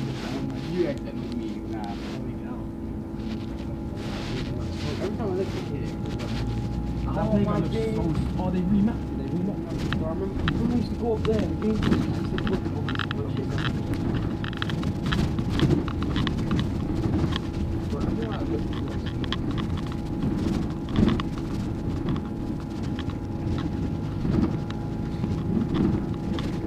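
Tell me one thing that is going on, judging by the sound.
A bus engine hums steadily while driving along a street.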